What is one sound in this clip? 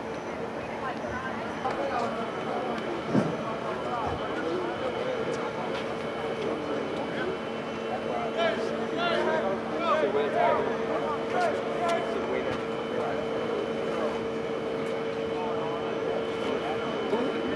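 Young men in a crowd chatter and call out outdoors.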